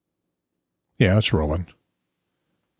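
An elderly man speaks calmly close by, outdoors.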